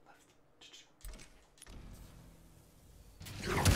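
Video game fight sounds whoosh and crash.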